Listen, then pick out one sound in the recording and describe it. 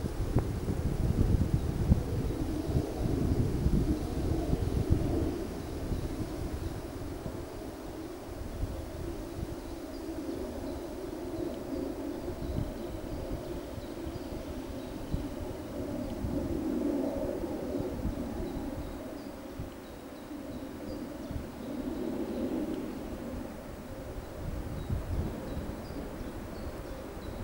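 Wind blows gustily across the microphone outdoors.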